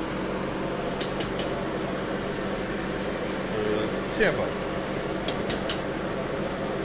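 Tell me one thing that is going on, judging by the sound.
A metal ladle clinks against a wok.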